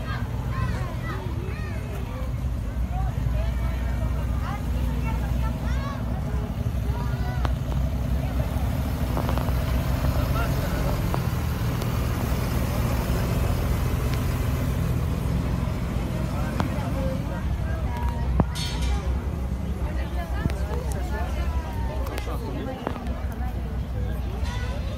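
A large truck's diesel engine idles with a steady low rumble.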